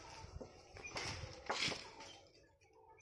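A long pole rustles and knocks through tree branches.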